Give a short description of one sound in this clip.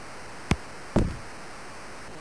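A ball is punted with a dull thud.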